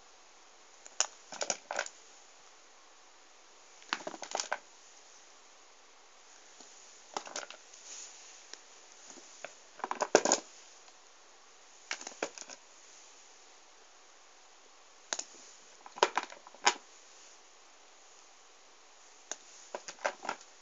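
Small rubber erasers clatter and click against each other as a hand rummages through them.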